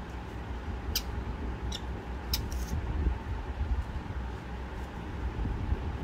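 A reed pen scratches softly across paper.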